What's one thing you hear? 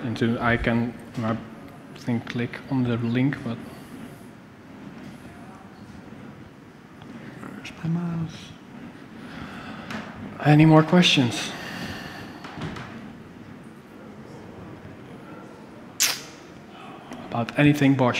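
A man speaks into a microphone in a large hall, in short bursts with pauses.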